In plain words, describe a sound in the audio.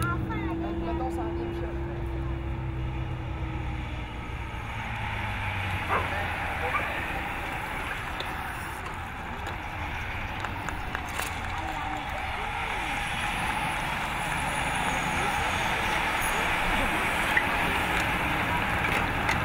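A pack of bicycles whirs past with a rush of tyres on the road.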